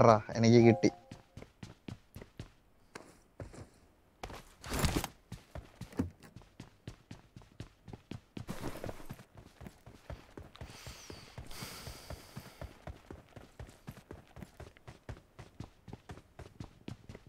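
Footsteps thud quickly and evenly on hard ground.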